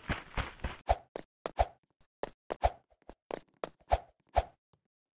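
Quick game sound effects thump and click in a rapid series.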